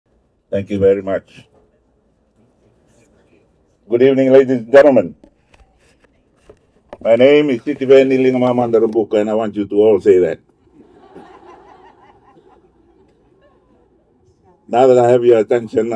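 An elderly man speaks calmly into a microphone, heard through a loudspeaker, pausing between phrases.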